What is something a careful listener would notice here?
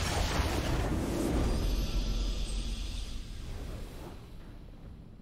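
A video game's victory fanfare swells and fades.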